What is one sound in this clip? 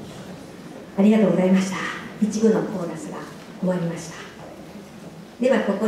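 A woman speaks into a microphone through loudspeakers in a large hall.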